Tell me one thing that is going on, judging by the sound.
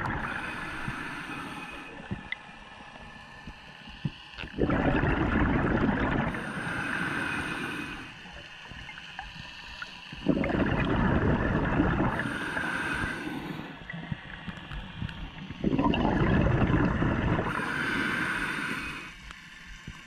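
A diver draws in breath through a regulator with a hissing rasp.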